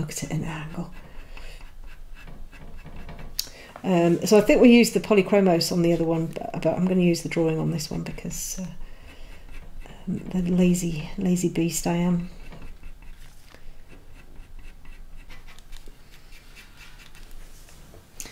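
A pencil scratches softly on paper in short strokes.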